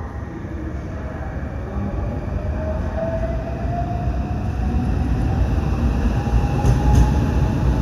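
An electric train pulls into a station platform with a rising motor whine.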